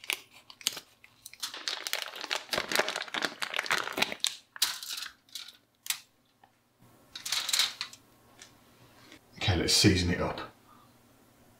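Plastic wrap crinkles as hands handle meat.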